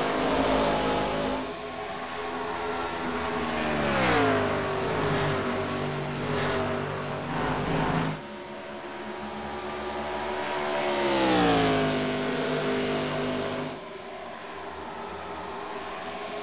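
Race car engines roar at high speed.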